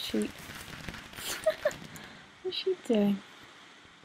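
A firework bursts and crackles overhead.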